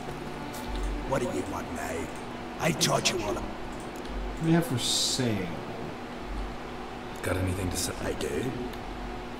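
A man with a deep, gruff voice speaks calmly.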